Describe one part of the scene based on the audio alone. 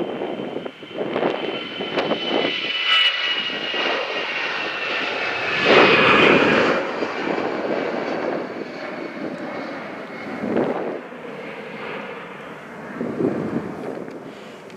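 Wind blows across open ground outdoors.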